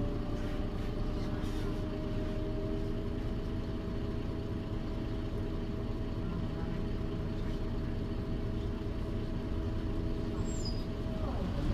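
A bus interior rattles and creaks.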